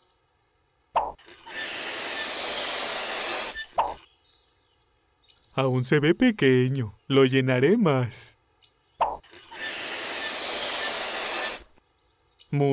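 Gas hisses steadily into a balloon from a pump.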